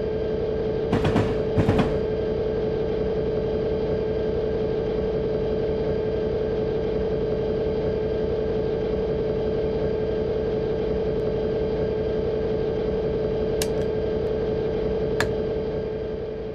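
A locomotive engine drones steadily.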